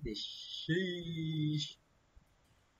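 Bright game chimes and jingles ring out briefly.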